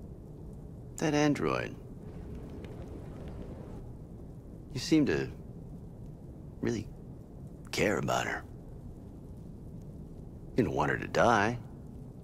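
A man speaks quietly and gravely, close by.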